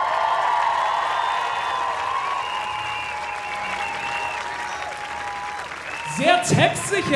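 A large crowd cheers and whistles outdoors.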